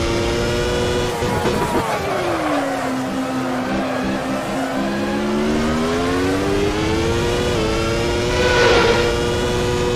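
A racing car engine whines loudly, dropping in pitch as it slows and then climbing again.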